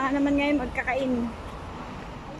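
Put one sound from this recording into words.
A middle-aged woman speaks cheerfully close by.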